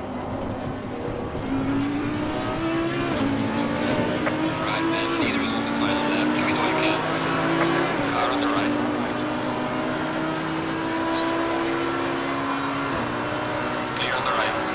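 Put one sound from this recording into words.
A V10 racing car engine accelerates hard through the gears.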